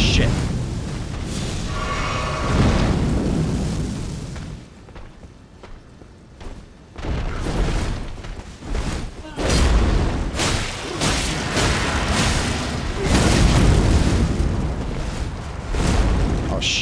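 Swords clash and strike in a fierce fight.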